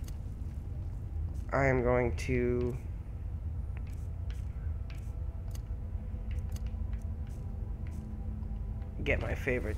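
Soft clicks tick in quick succession.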